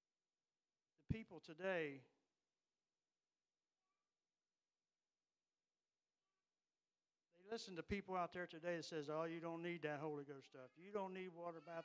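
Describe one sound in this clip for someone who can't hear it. An elderly man speaks with feeling into a microphone, heard through a loudspeaker, with pauses.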